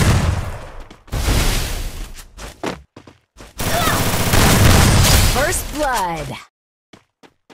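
A shotgun fires loud, booming blasts in quick succession.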